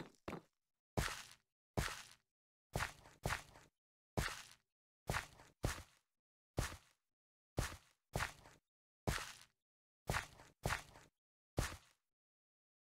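Blocks of dirt are set down one after another with soft, crunchy thuds.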